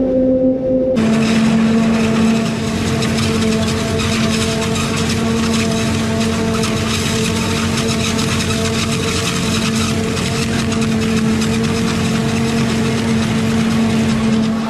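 Corn stalks crackle and rustle as a harvester header cuts through them.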